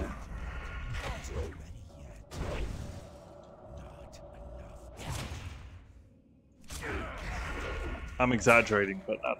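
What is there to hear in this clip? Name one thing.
Blades strike and clash in a fight.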